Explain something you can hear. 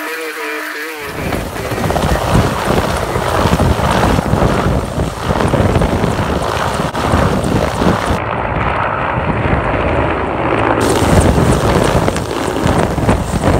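A helicopter's rotor thumps loudly close by.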